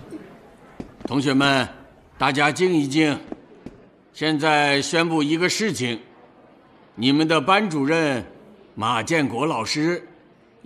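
An elderly man speaks loudly and firmly to a room.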